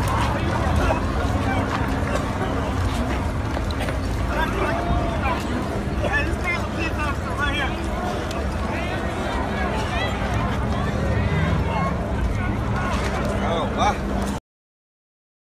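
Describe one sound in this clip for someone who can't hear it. A crowd of people talk and shout outdoors.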